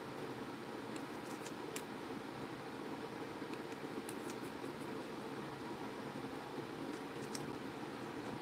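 A paintbrush taps and clicks against a plastic paint palette.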